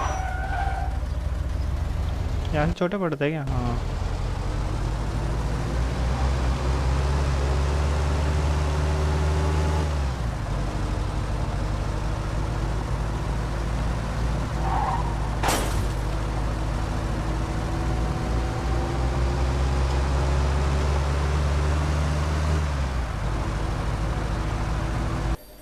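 A car engine hums steadily and revs up and down as the car drives.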